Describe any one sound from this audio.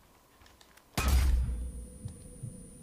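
An explosion booms loudly close by.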